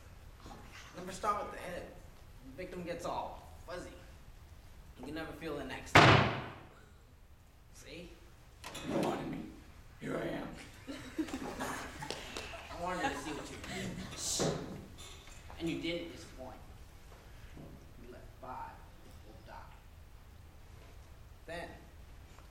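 Another young man answers in a low, gruff voice.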